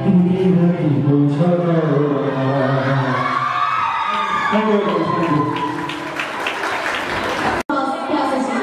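A young man sings loudly into a microphone through loudspeakers.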